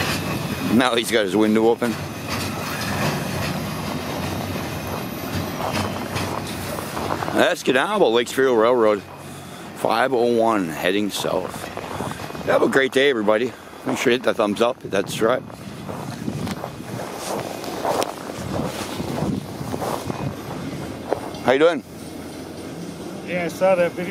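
Car tyres crunch slowly over packed snow.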